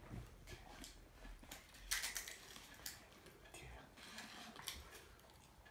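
A toddler crunches on a crisp.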